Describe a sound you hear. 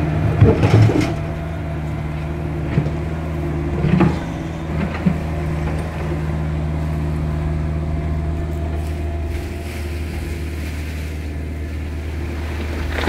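A diesel excavator engine idles with a steady low rumble nearby.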